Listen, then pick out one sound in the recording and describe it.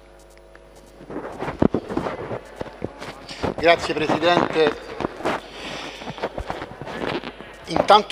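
A man speaks through a microphone in a calm, even tone.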